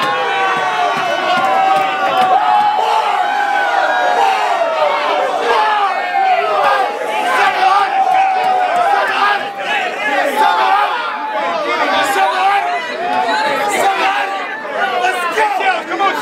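A crowd cheers and shouts in a noisy room.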